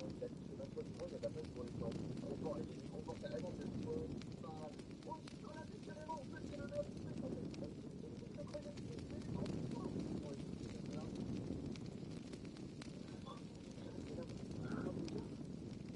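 A torch flame crackles and roars close by.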